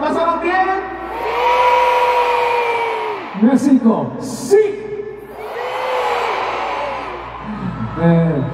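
A large crowd screams and cheers loudly.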